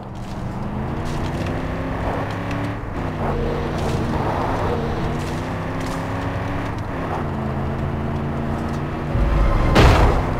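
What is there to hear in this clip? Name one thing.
A car engine hums steadily and changes pitch as the car drives.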